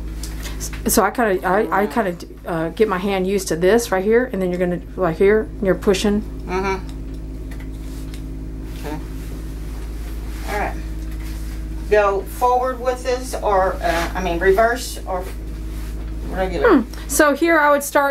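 An older woman talks calmly, close by.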